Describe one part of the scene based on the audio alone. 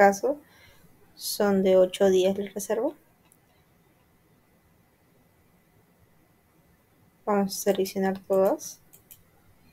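A young woman speaks calmly and close to a microphone, in short phrases with long pauses.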